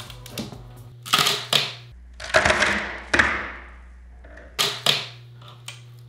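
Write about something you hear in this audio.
A man bangs a wooden panel into place with sharp blows.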